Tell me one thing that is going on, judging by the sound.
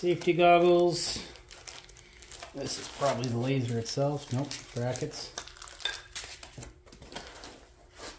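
Foam packing rubs and squeaks under hands.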